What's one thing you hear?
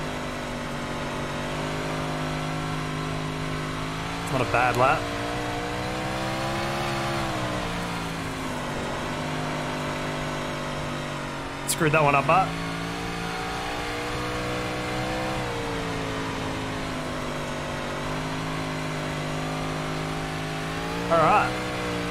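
A racing car engine drones steadily, rising and falling in pitch.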